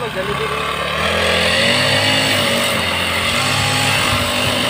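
A grass trimmer line whirs through grass.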